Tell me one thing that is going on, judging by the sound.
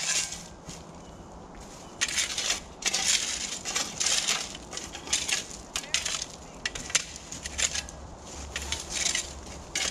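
A rake scrapes across gravel.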